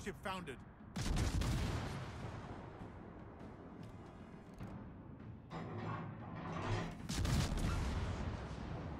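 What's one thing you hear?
A cruiser's deck guns fire a salvo with a deep boom.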